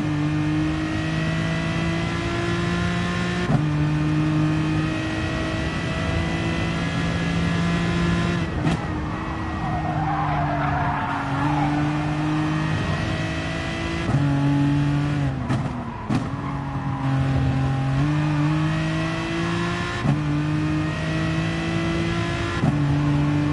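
A racing car engine roars at high revs, dropping sharply at each gear change.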